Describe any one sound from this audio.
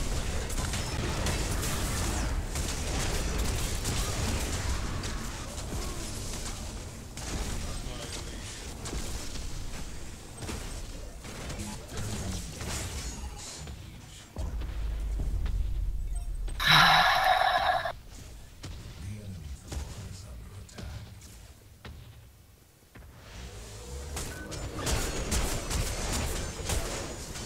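Fiery blasts and explosions burst in a game fight.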